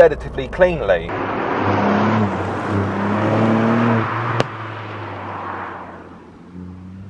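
A car engine hums as a car drives away down a road and fades.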